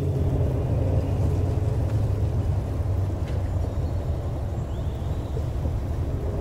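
A car engine rumbles steadily.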